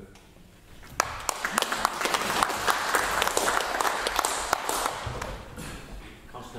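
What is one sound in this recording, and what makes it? A group of people applaud.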